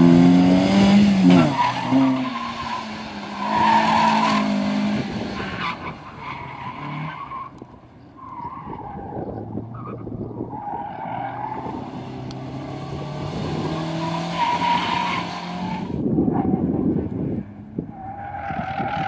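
A car engine revs hard and drops back as the car corners.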